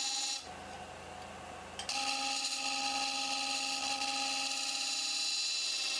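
A wood lathe motor whirs steadily.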